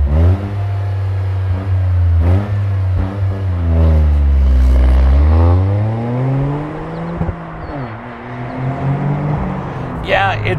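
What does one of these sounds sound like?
A car engine revs loudly and roars away, its pitch rising and falling through the gears.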